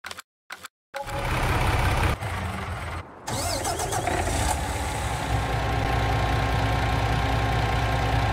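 A truck engine idles with a low, steady rumble.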